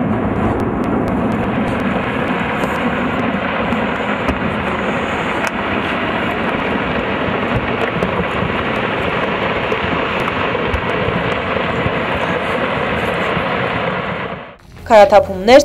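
Falling rocks rumble steadily down a slope.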